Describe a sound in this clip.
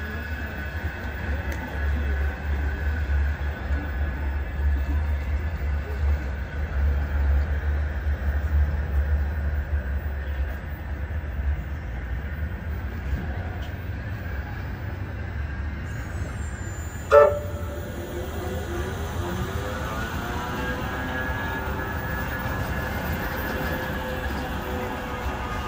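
A tram rumbles slowly past close by.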